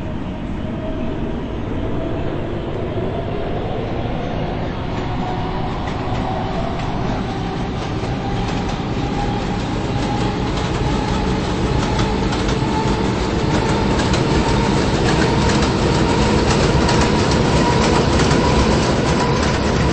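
A train rumbles and rattles over the tracks.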